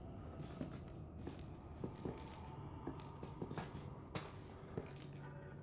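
Footsteps thud and creak on a wooden floor.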